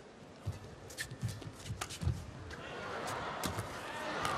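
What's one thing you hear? Shoes squeak sharply on a court floor.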